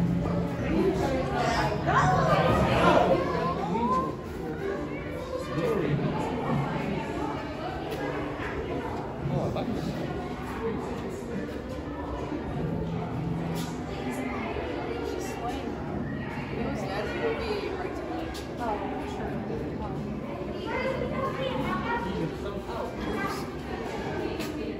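Many people talk and murmur in a crowd, echoing in a large room.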